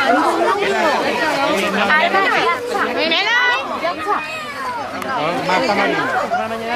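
A crowd of adults and children chatter loudly nearby outdoors.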